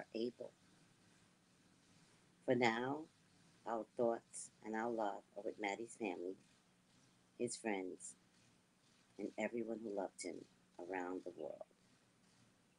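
A woman reads aloud calmly, close by over a microphone, with pauses.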